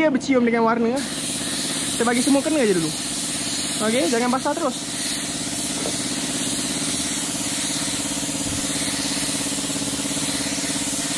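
A spray gun hisses steadily as it sprays paint.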